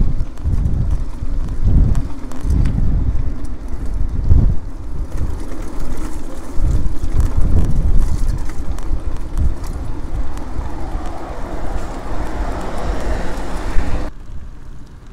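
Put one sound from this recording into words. Wind buffets and rumbles loudly close by.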